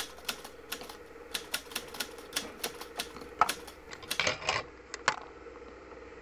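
Fingers knock and rub against a phone held close.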